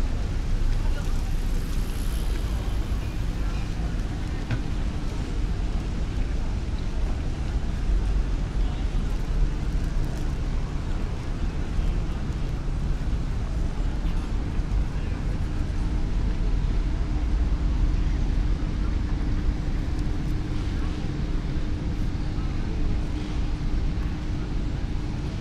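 People chatter quietly in the distance outdoors.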